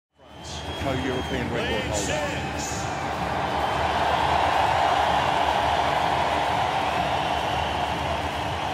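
A huge stadium crowd cheers and roars.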